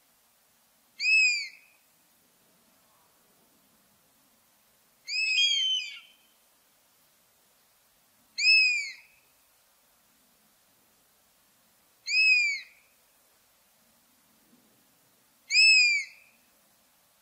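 A bird of prey gives loud, high, piercing calls at regular intervals.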